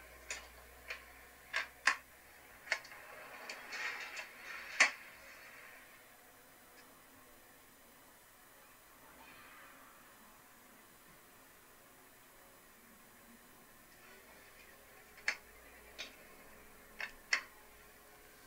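Metal drawers slide open and shut with sharp clacks.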